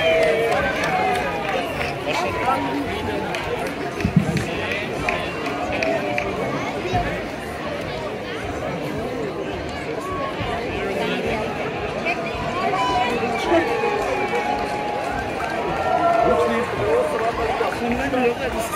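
A crowd of people chatters outdoors all around.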